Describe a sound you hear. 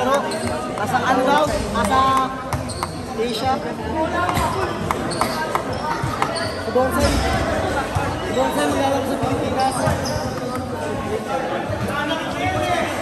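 Sneakers squeak on a court in the distance.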